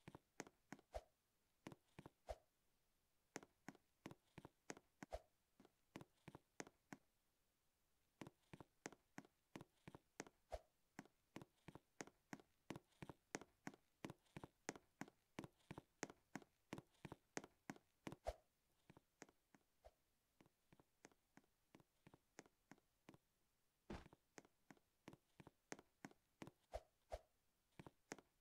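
Quick, light footsteps patter steadily on the ground.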